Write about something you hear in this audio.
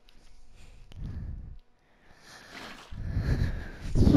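Water splashes and pours out of a bucket.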